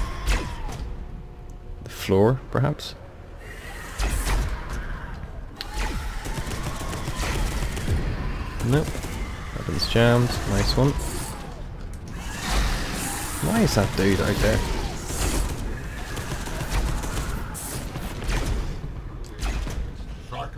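A heavy hammer swings and smashes into enemies.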